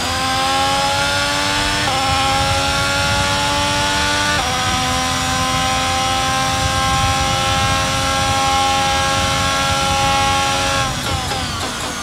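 A Formula One car's V6 turbo engine screams at full throttle, shifting up through the gears.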